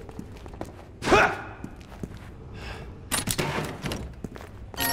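A heavy wooden crate is smashed open with a loud crack.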